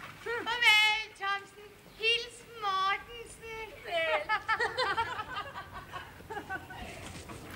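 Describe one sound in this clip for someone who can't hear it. A woman sings loudly.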